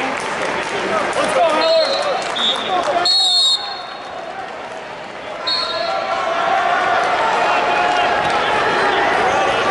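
Wrestlers' shoes squeak on a mat.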